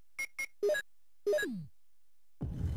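Short electronic beeps chime in quick succession.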